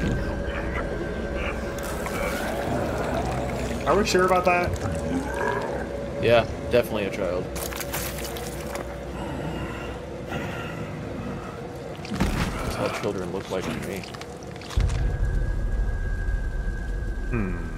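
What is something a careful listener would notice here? A huge creature growls and roars.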